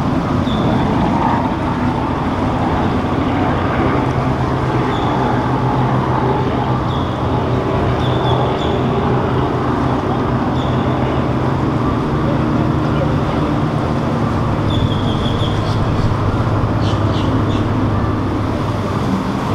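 A yacht engine rumbles steadily as the boat cruises past.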